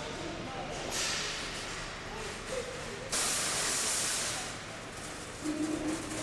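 A car drives slowly past with a low hum.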